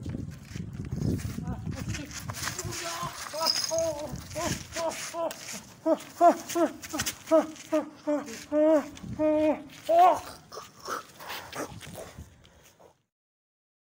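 Two people scuffle, feet scraping on gritty ground.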